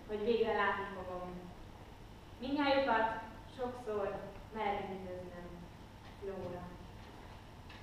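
A woman speaks expressively on a stage, with pauses between phrases.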